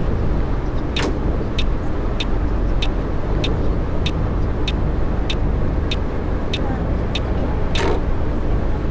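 A turn signal ticks at an even pace, then stops.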